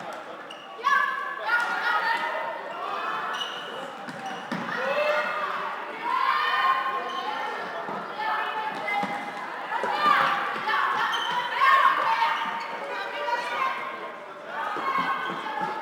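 Plastic sticks clack against a ball on a hard indoor floor.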